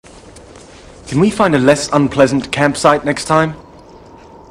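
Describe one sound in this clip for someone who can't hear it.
A man asks a question.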